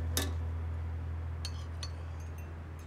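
Dishes clink softly.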